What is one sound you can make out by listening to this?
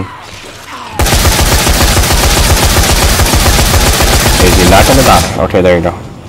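A rifle fires rapidly in a long, loud burst.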